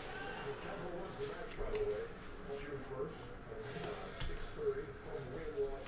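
Trading cards rustle and slide in hands.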